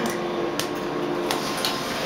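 An elevator button clicks as it is pressed.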